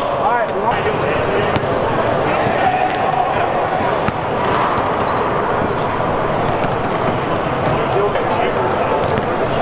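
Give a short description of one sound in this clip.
A basketball thumps on a hard floor.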